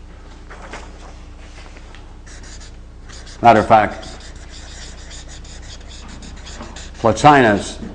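A marker squeaks across paper.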